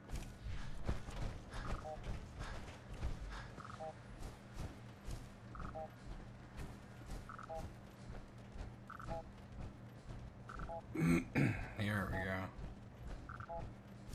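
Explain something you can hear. Heavy metal-clad footsteps thud steadily on the ground.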